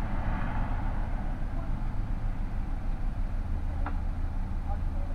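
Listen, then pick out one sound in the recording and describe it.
A motorcycle engine idles close by with a low, steady rumble.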